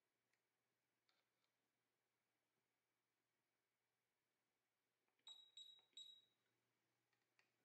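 Metal probe tips tap lightly on a circuit board.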